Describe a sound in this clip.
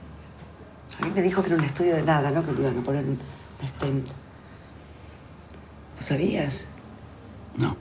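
A woman speaks nearby in a calm voice.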